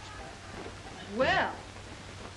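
A young woman speaks up in alarm.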